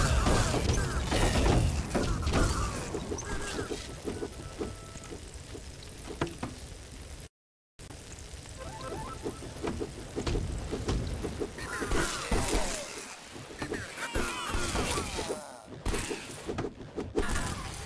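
Blades whoosh through the air in quick swings.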